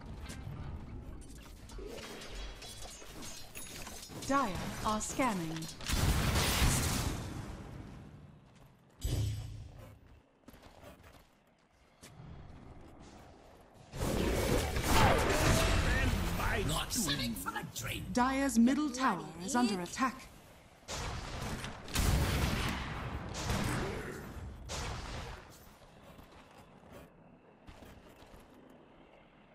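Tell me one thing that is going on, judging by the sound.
Video game battle sounds clash and crackle.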